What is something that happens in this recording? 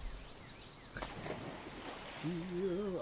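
Water splashes as a figure wades in.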